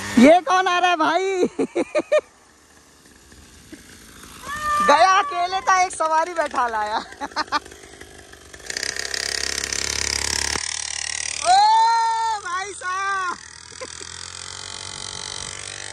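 A small motorbike engine hums and revs.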